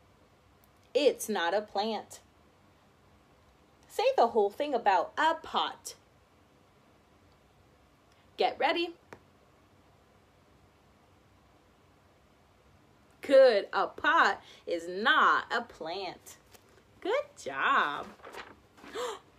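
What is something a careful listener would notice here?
A young woman speaks calmly and clearly close by, with pauses.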